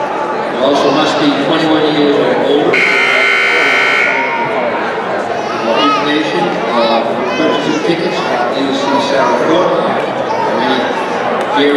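A man talks nearby over crowd noise.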